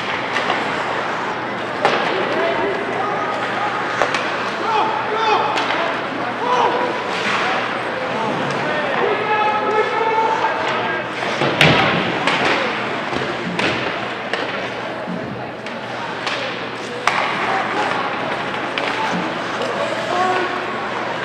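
Ice skates scrape and carve across the ice.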